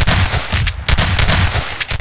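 A pump shotgun fires a loud blast.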